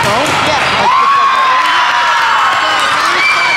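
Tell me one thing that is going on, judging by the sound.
Young women players cheer together.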